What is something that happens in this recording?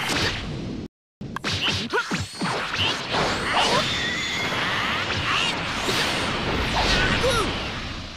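Punches and kicks land with sharp, heavy thuds in quick succession.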